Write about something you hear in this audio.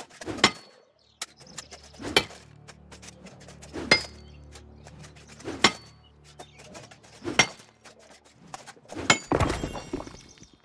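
A pickaxe strikes rock with sharp, ringing blows at a steady pace.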